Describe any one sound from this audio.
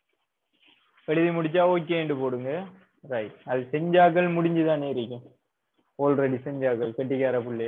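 A young man lectures clearly and close to the microphone.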